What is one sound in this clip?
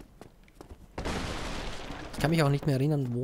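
Wooden barrels smash and splinter.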